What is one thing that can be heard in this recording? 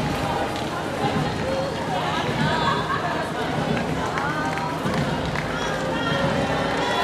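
A crowd of adults chatters nearby outdoors.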